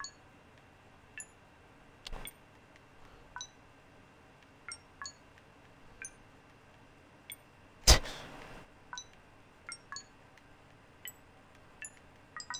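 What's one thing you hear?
Electronic keypad buttons beep in short, high blips.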